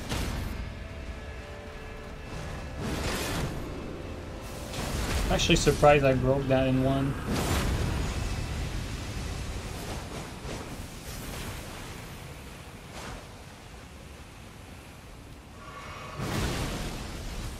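Weapons clash and slash in a game fight.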